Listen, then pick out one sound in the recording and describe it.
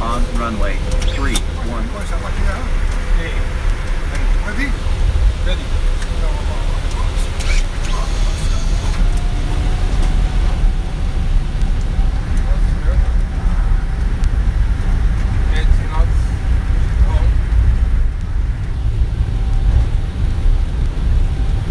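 A jet engine roars steadily inside an aircraft cockpit.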